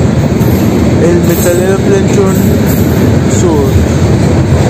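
Steel wheels squeal against the rails.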